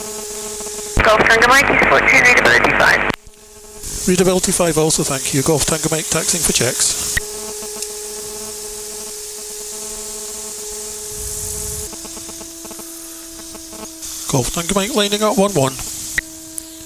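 A man talks calmly through a headset microphone, close up.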